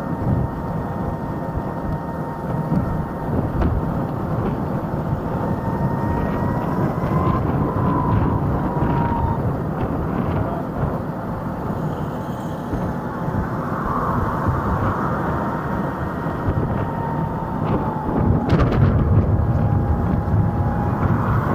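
An electric scooter hums steadily as it rides along a city street.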